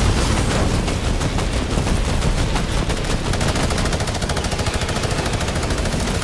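Wind rushes steadily past during a fast glide.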